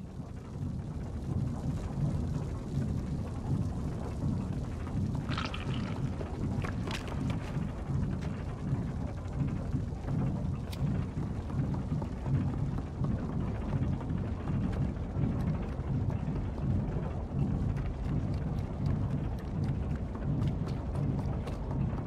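Small footsteps patter on wooden boards.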